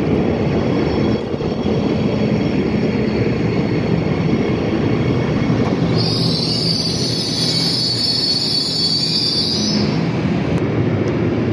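A train rumbles past close by on the rails.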